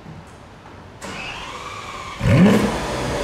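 A sports car engine cranks and starts up.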